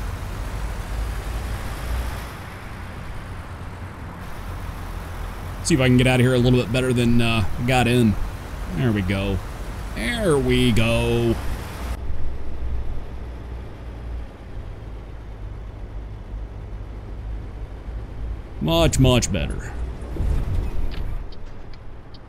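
A truck engine rumbles low and steady.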